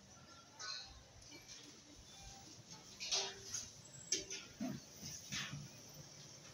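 Dishes and pots clatter at a market stall.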